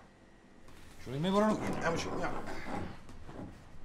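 A man speaks loudly, calling to others.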